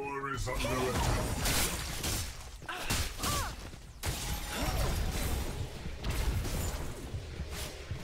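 Blades clash and whoosh in a fast fight.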